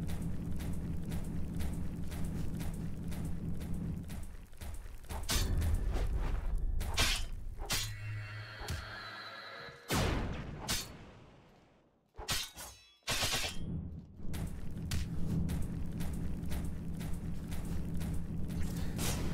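Quick footsteps patter steadily on stone.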